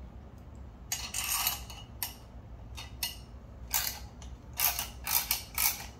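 A wrench ratchets on a bolt in quick clicks.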